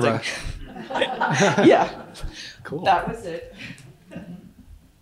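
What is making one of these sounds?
A woman laughs close to a microphone.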